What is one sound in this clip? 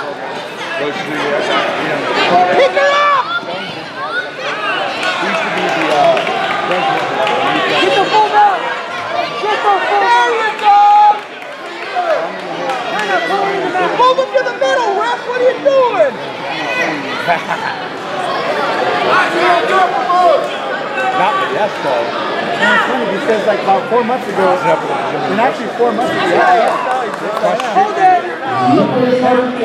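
Men shout instructions loudly from close by.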